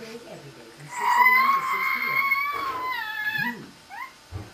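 A baby squeals loudly.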